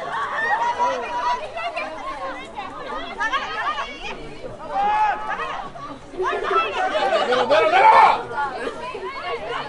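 Young women shout and call out to each other across an open field.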